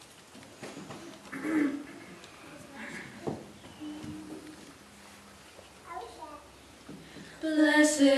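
Girls whisper and talk quietly to each other.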